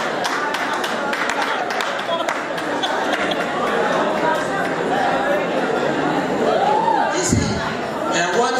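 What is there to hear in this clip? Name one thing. A crowd of men and women cheers and chatters with excitement.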